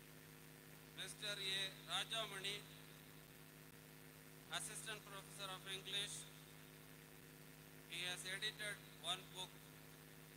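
A man speaks through a loudspeaker, announcing calmly.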